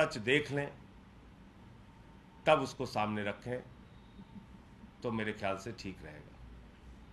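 A middle-aged man speaks firmly into microphones, in short bursts with pauses.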